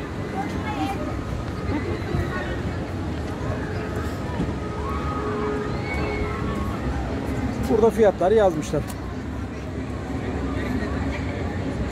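Children and adults chatter faintly in the distance outdoors.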